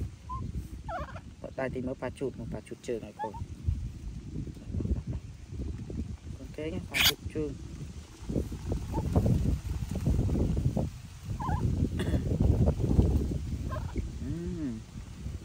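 A baby monkey squeaks and whimpers softly.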